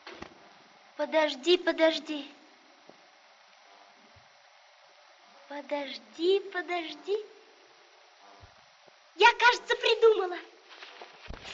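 A young boy speaks in short bursts, close by.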